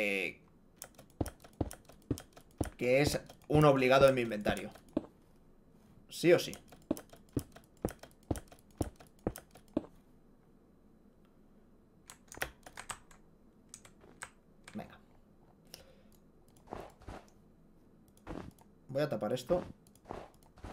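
Game blocks click and pop as they are placed and broken.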